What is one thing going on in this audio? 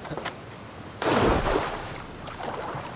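Something plunges into water with a loud splash.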